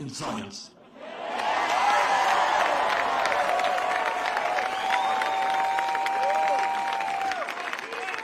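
A large crowd cheers and applauds loudly.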